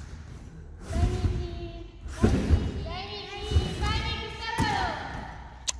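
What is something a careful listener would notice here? Feet thump onto a padded mat.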